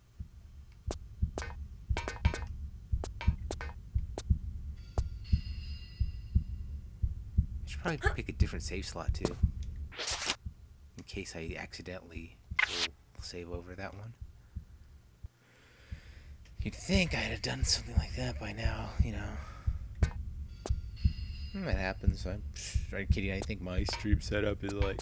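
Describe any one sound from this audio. Footsteps tap steadily on a hard metal floor.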